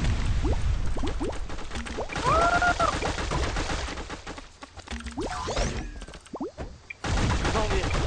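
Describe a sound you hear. Cartoonish toy guns fire in short bursts.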